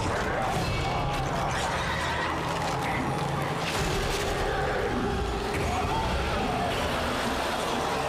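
Flesh tears and splatters wetly.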